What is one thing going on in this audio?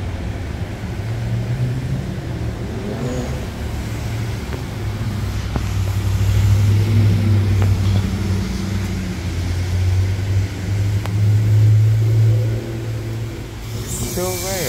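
A bus engine idles with a low, steady rumble close by.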